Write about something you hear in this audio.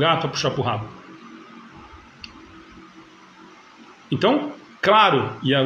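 A man speaks calmly into a nearby microphone, in short bursts with pauses.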